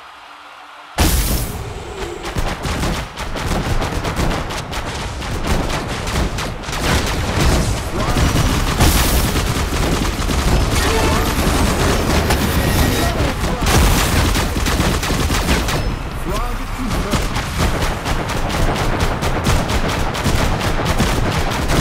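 Rapid cartoon gunfire crackles and pops.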